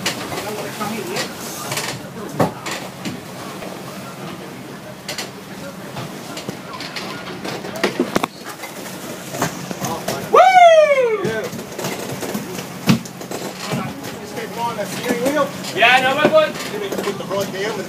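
Men talk and call out nearby.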